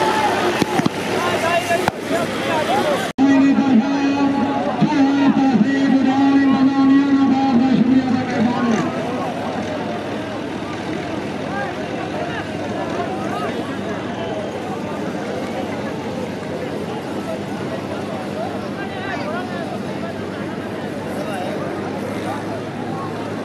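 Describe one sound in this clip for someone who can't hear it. A large crowd of men shouts and cheers outdoors.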